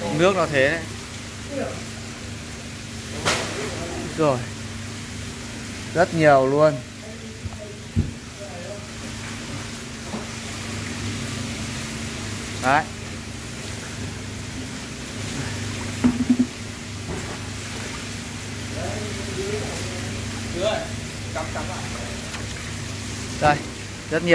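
Water splashes and sloshes as a hand scoops through it.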